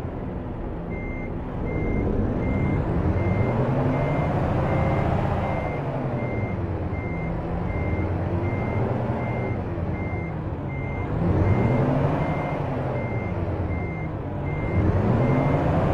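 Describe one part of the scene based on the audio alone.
A reversing alarm beeps steadily.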